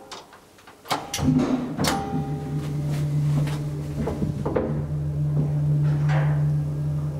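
An elevator motor hums steadily as the car moves.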